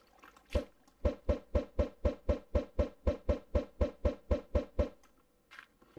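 Snowballs are thrown again and again with quick, even pops.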